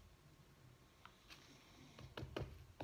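Plastic bottles clack against a table.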